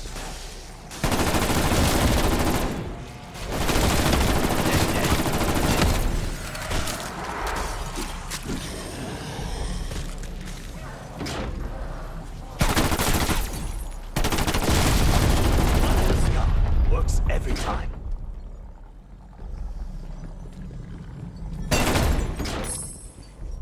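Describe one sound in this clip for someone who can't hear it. A gun fires rapid bursts with fiery blasts.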